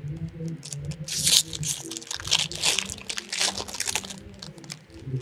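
A thin plastic sheet crinkles.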